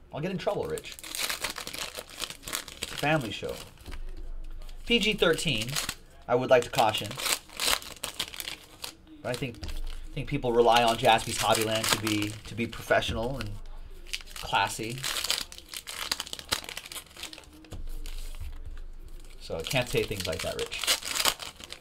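Paper wrappers crinkle and tear as packs are opened.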